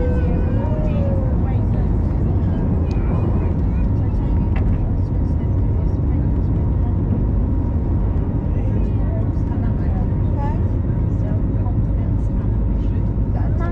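Jet engines roar steadily in a loud, constant low rumble.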